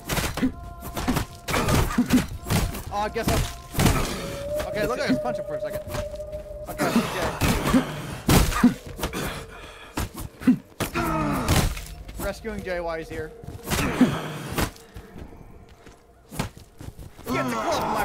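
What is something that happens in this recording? A heavy hammer thuds repeatedly against a body.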